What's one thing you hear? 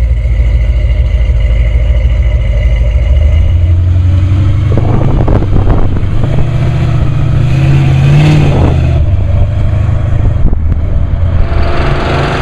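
A car engine rumbles loudly as the car drives off and passes close by.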